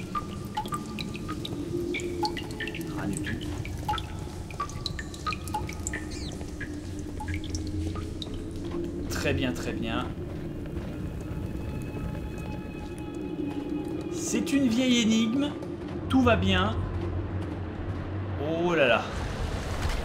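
Footsteps tap on a stone floor in an echoing passage.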